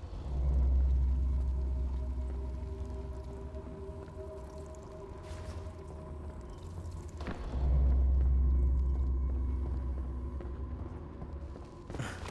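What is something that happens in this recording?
Footsteps thud on wooden stairs.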